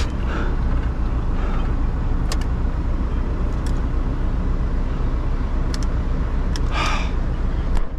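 A dashboard switch clicks.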